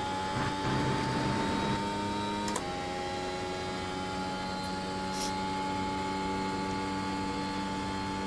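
A racing car engine whines at high revs.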